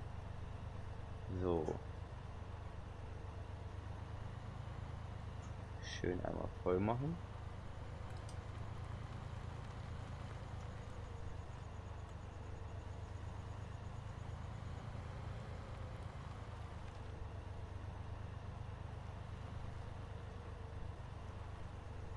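A loader's diesel engine rumbles steadily.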